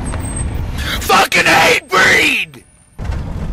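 A man yells loudly, close by.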